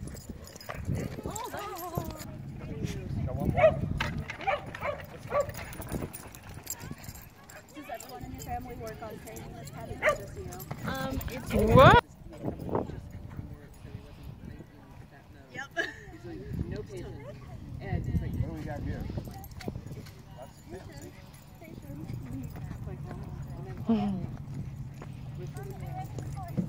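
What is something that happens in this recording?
A man talks to dogs nearby in a calm, friendly voice.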